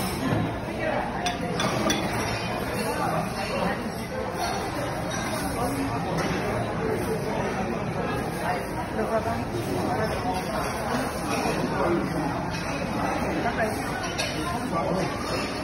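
A woman talks animatedly close by.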